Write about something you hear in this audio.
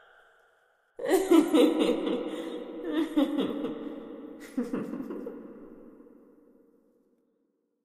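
A woman cackles wildly in a large echoing hall.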